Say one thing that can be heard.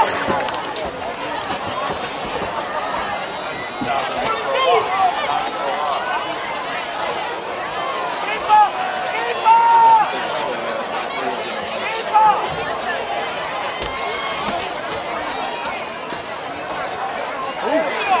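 Young men and boys on a sideline shout and call out.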